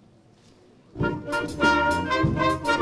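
A wind band starts playing loudly.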